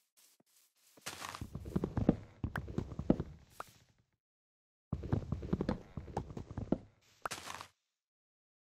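An axe chops rapidly at a wooden log with hollow knocks.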